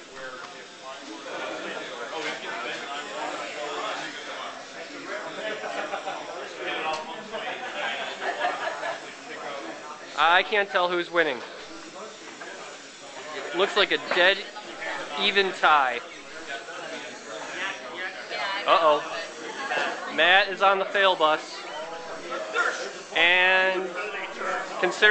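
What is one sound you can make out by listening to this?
People talk and chatter nearby.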